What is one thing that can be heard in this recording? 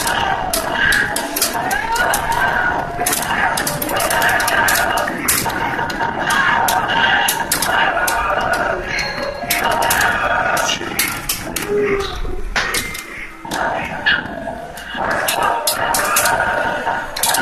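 Game music plays steadily through a loudspeaker.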